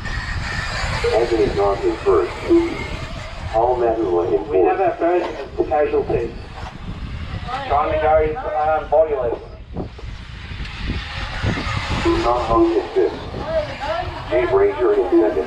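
Small remote-control cars race on a dirt track, their motors whining up and down.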